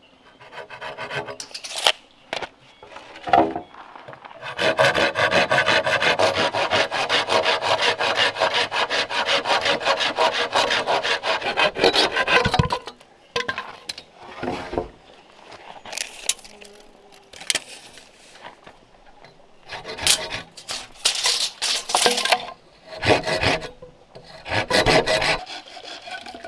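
A hand saw cuts through bamboo with quick rasping strokes.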